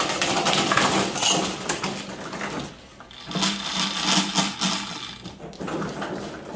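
An automatic table whirs as it mixes the tiles.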